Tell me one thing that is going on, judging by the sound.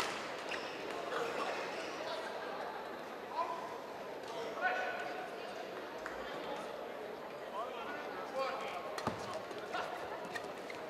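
A crowd murmurs throughout a large echoing hall.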